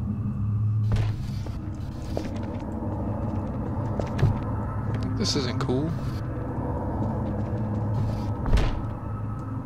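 Heavy boxes knock and thud against a hard floor.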